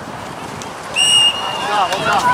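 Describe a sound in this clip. A referee's whistle blows once, short and sharp.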